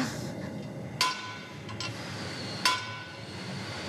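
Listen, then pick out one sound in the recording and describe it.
Metal clinks and rings sharply.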